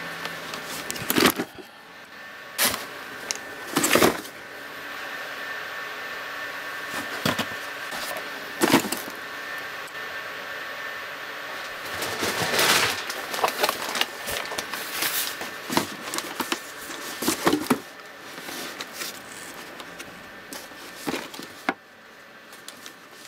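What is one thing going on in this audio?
Cardboard boxes thump and scrape as they are moved and stacked.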